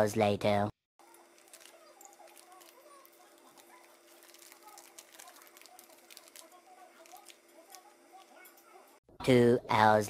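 A plastic bag crinkles softly.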